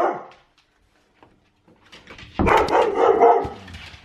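A door handle clicks as a door opens.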